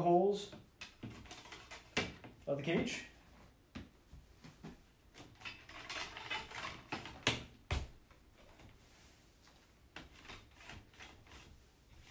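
Metal rods clink and rattle against a wire cage.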